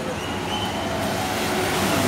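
A motorcycle rides past.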